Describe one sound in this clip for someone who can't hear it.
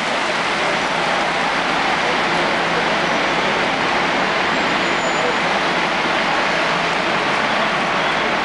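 Heavy rain and hail pour down hard onto the pavement outdoors.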